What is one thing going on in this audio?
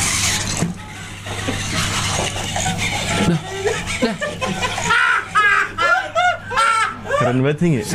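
A second man talks and laughs close to a microphone.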